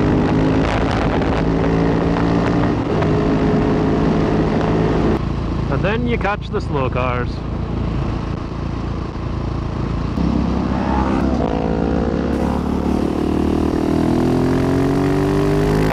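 A motorcycle engine revs and drones close by.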